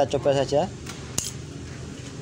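A key clicks as it turns in an ignition switch.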